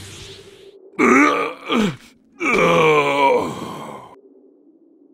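A man groans and grunts in pain.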